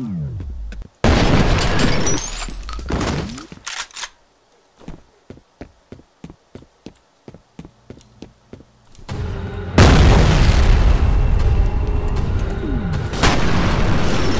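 A shotgun fires loudly with booming blasts.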